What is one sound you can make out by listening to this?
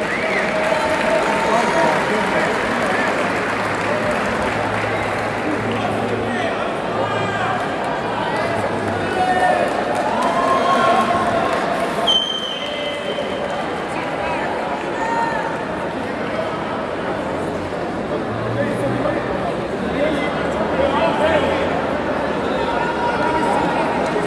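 A large crowd murmurs and calls out throughout a big echoing arena.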